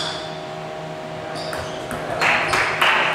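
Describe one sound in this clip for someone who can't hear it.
A table tennis ball clicks back and forth on paddles and table.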